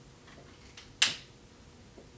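A lighter clicks once.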